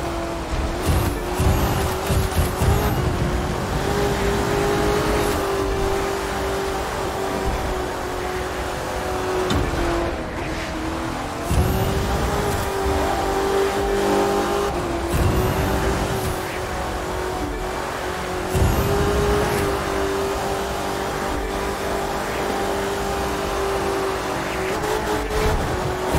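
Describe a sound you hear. A racing car engine roars at high revs, dropping briefly at each gear change.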